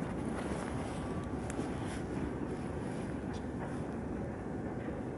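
A train rumbles steadily in the distance as it approaches.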